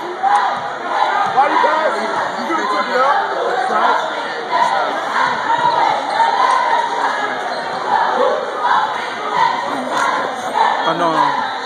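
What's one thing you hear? A crowd of spectators chatters and cheers loudly in a large echoing gym.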